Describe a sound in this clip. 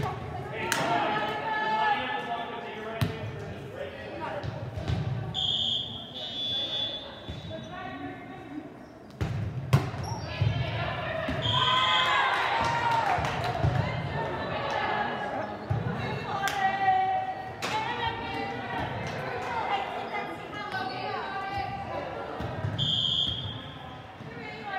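Young women call out and cheer in a large echoing hall.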